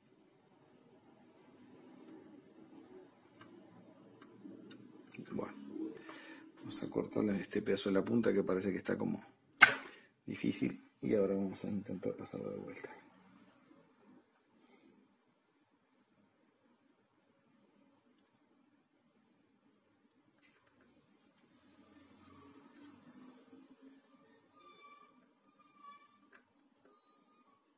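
Metal tweezers scrape and click against a circuit board.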